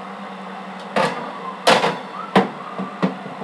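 A baking dish clatters onto a metal oven rack.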